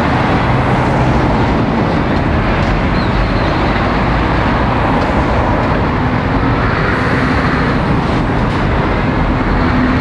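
Heavy lorry engines rumble slowly past.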